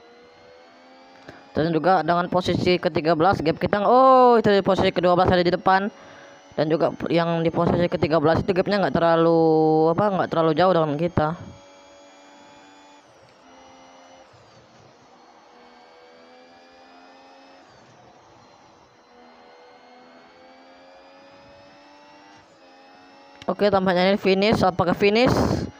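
A racing car engine whines steadily, its pitch slowly climbing and then dropping with each gear change.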